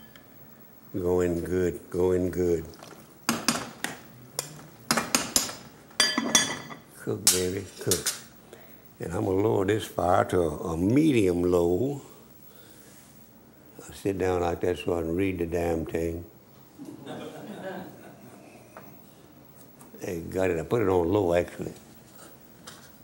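An elderly man talks calmly into a clip-on microphone.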